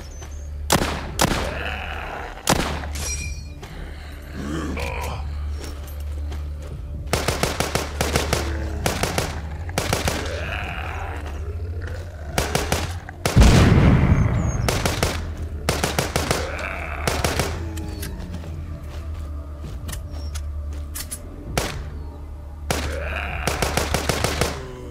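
Zombies groan and moan.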